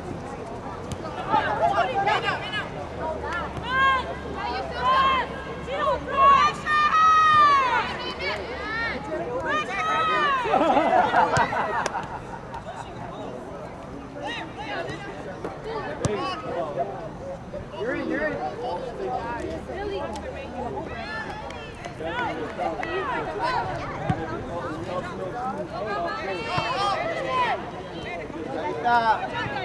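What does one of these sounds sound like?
Young women shout and call to one another outdoors, some way off.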